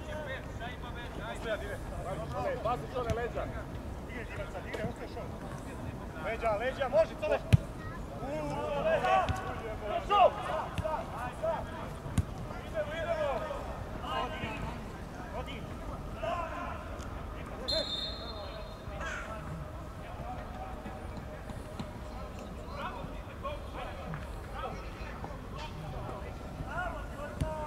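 Men shout to each other across an open outdoor pitch.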